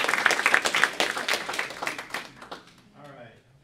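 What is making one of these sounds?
An audience claps loudly, then the applause dies away.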